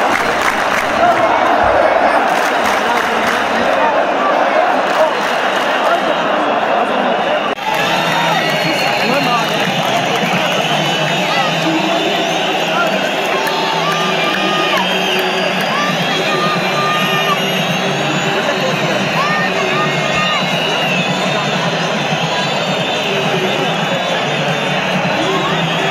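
A large stadium crowd chants and cheers loudly, echoing across the stands.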